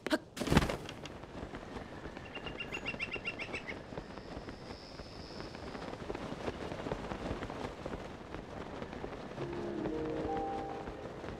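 Wind rushes steadily past while gliding.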